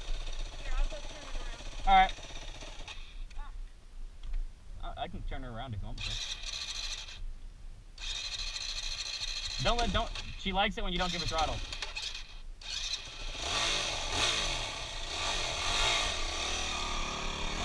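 A dirt bike engine idles and revs nearby.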